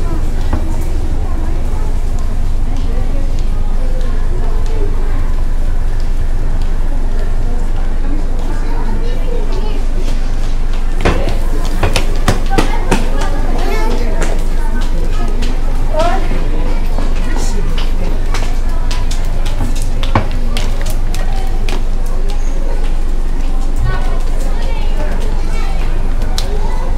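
Footsteps of passers-by tap on stone paving nearby.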